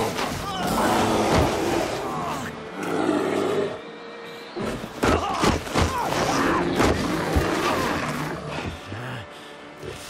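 A bear roars and growls loudly and fiercely.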